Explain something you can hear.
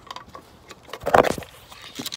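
A hand bumps and rubs against the microphone close up.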